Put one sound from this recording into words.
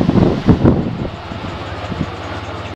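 A car engine settles to a low, steady idle.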